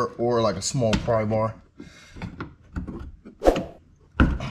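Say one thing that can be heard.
A plastic clip snaps as it is pried loose.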